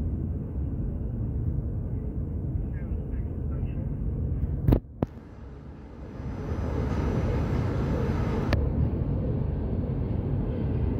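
Traffic hums far below in a city at night.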